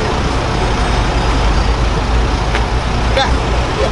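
A car door opens and closes.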